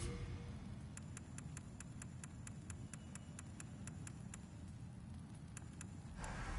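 Short menu clicks tick quickly one after another.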